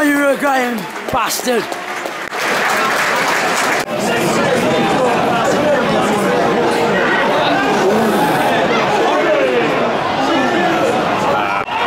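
A large stadium crowd sings and chants loudly all around.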